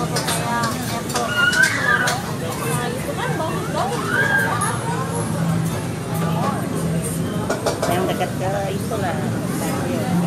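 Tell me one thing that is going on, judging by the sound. Many people chatter around the room.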